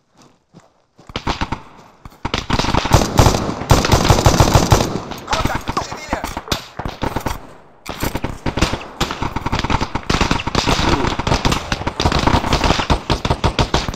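A rifle fires rapid bursts of shots, loud and sharp.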